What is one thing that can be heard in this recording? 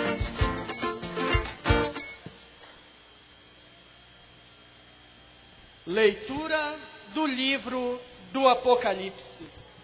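A man speaks loudly through a microphone and loudspeakers outdoors.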